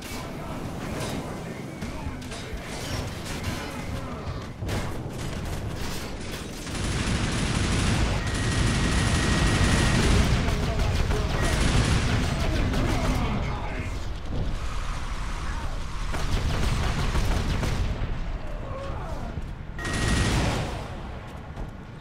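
Explosions boom and rumble across the battlefield.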